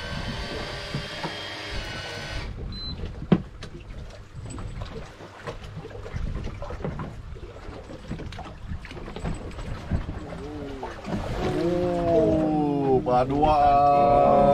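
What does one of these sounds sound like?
Waves slap against the side of a boat.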